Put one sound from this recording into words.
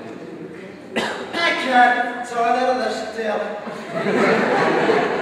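A man speaks loudly and theatrically, heard through a microphone in a large room.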